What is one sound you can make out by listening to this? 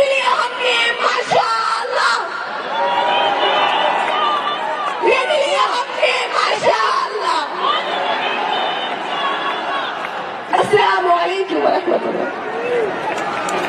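A woman speaks passionately into a microphone, heard through loudspeakers.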